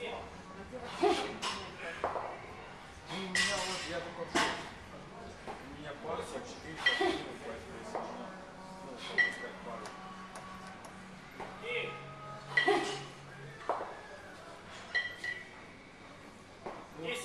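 A heavy medicine ball slams onto the floor again and again, echoing in a large hall.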